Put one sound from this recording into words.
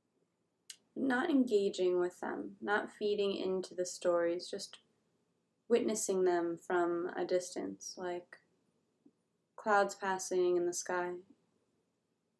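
A young woman speaks slowly and calmly, close to a microphone, with long pauses.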